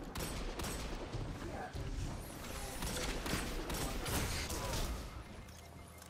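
A pistol fires repeated sharp shots.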